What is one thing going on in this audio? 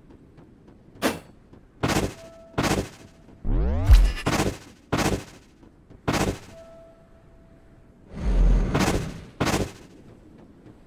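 Quick whooshing game sound effects burst out again and again as a character dashes.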